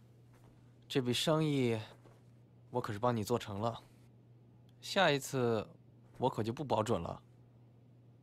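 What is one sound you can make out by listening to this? Another young man answers calmly nearby.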